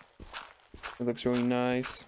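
Dirt blocks crunch as they break apart.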